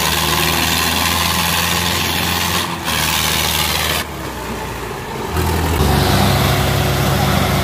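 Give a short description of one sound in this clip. A tractor engine roars loudly close by.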